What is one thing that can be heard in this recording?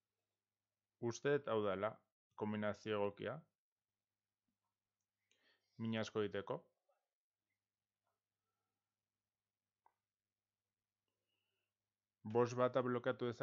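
A man speaks calmly and close into a microphone, in short bursts.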